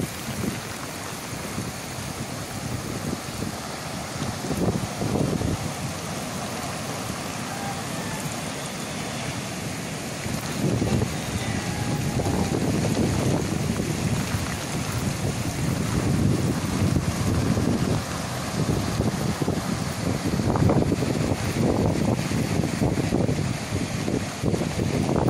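Strong wind gusts and roars across the microphone outdoors.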